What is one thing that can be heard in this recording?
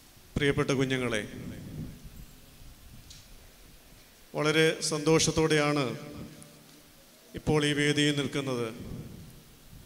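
A middle-aged man speaks into a microphone in bursts, heard through a loudspeaker in an echoing room.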